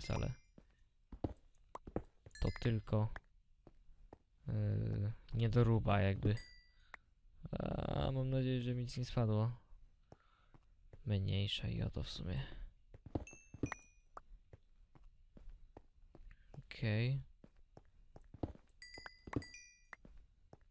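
A pickaxe taps and chips at stone in quick, repeated knocks.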